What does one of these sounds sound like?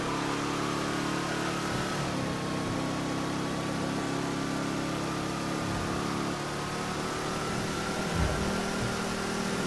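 A sports car engine drones while cruising at speed.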